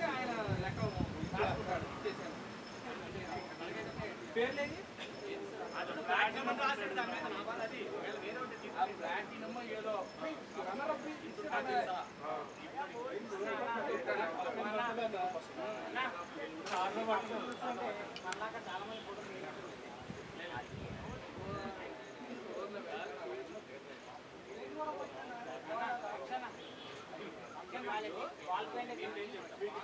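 Several men talk over one another outdoors.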